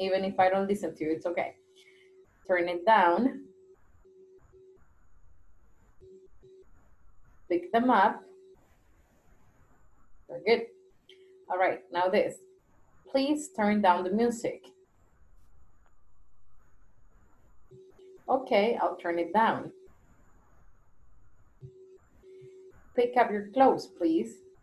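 A young woman speaks over an online call, pausing between phrases.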